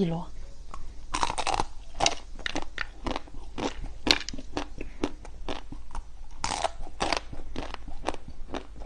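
A young woman chews soft jelly with wet, squishy clicks close to a microphone.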